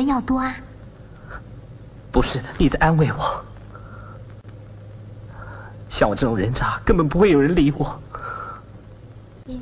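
A young man speaks quietly into a phone.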